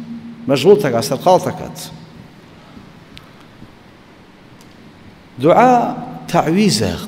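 An elderly man speaks slowly and solemnly into a microphone, with long pauses.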